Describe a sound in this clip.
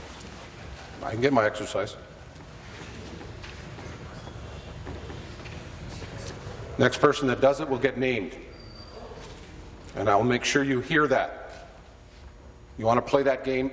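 A man speaks formally through a microphone in a large echoing hall.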